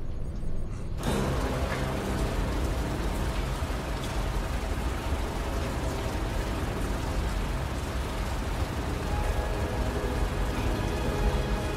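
A small submarine's engine rumbles steadily as it moves through water.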